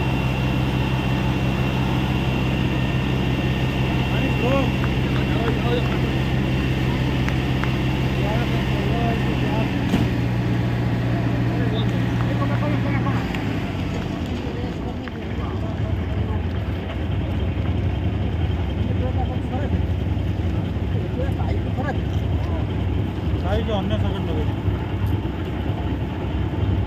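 A car burns with a steady roar of flames outdoors.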